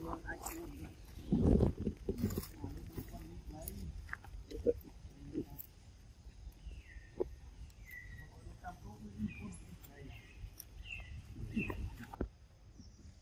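Dry leaves rustle and crunch as a monkey moves over them.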